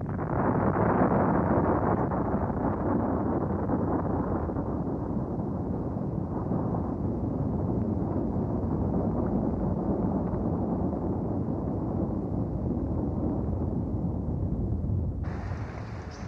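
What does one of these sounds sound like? A volcano erupts with a deep, steady roar.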